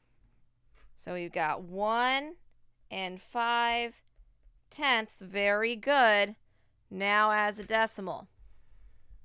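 A woman speaks with animation through a microphone, as if on an online call.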